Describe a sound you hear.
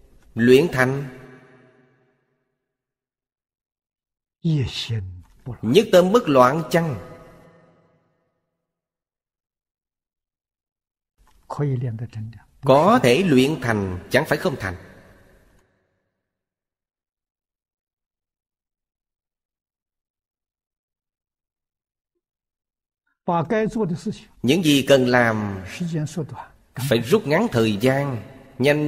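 An elderly man speaks calmly and expressively into a close microphone, with long pauses between phrases.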